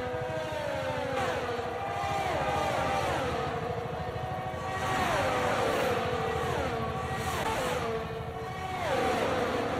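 Racing car engines drop in pitch as the cars shift gears and pass by.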